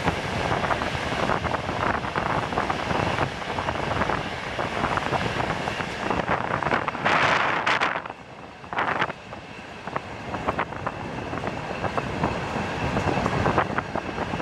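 A train rumbles along the tracks at speed.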